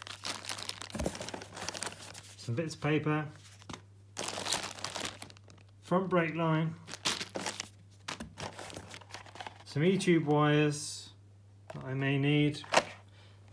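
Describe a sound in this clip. Paper and plastic packaging rustle and crinkle close by.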